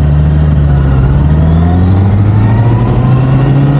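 A motorcycle engine revs up and rises in pitch as the motorcycle pulls away.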